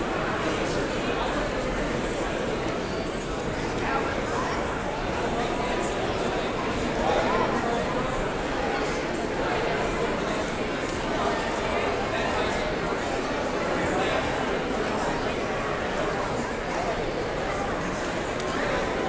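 A large crowd of men and women chatters and greets one another in a big echoing hall.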